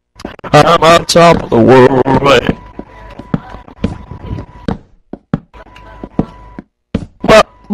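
Wooden blocks are set down with soft knocks.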